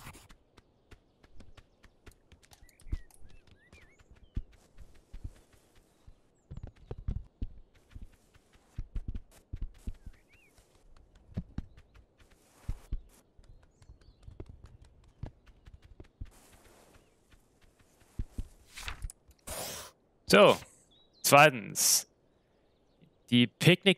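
A man talks quietly into a headset microphone.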